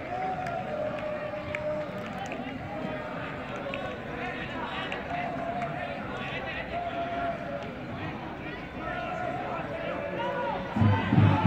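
Spectators chatter at a distance.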